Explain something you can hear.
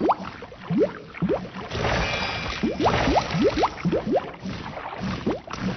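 Quick rising chirps from a video game character jumping repeat over and over.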